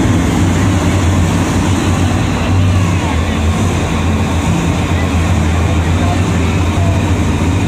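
Monster truck engines roar loudly in a large echoing arena.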